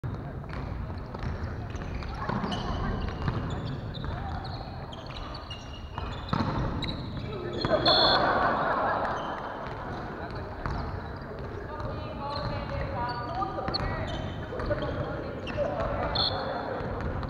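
A volleyball thumps off players' hands and arms.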